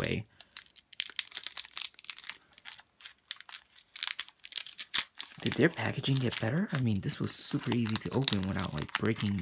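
A foil wrapper crinkles and rustles as fingers tear it open.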